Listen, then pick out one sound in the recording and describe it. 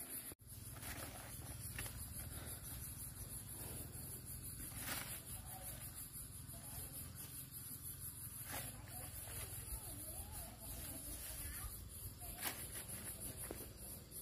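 Pods drop and patter into a woven basket.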